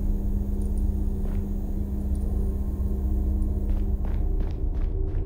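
A vending machine hums steadily.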